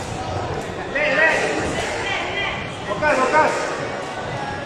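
Children call out to each other in an echoing hall.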